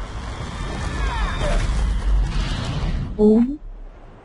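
A blast booms and rumbles.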